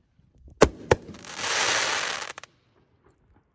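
Firework sparks crackle and hiss.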